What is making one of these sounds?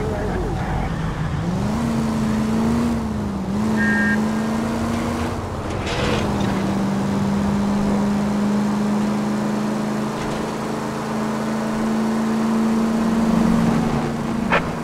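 A car engine hums steadily, rising and falling in pitch as the car speeds up and changes gear.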